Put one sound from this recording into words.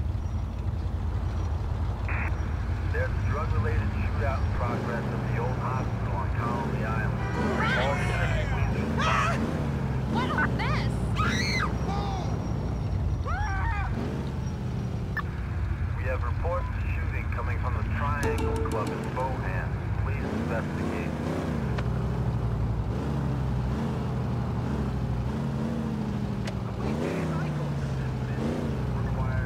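A van engine hums steadily as the van drives slowly.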